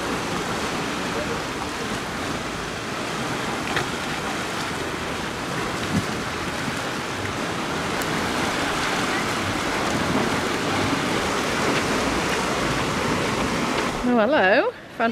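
Waves wash and churn against rocks.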